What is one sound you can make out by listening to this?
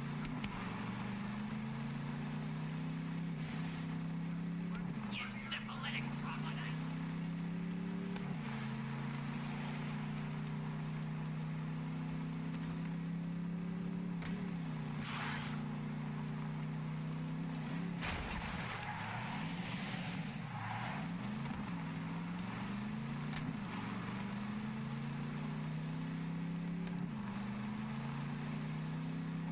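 A buggy engine drones steadily, its pitch rising and falling with gear shifts.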